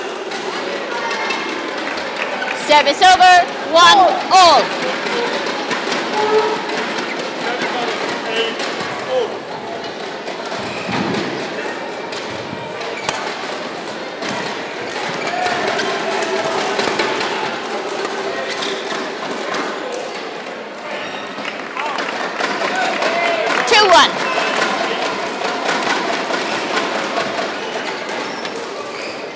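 Spectators murmur in a large hall.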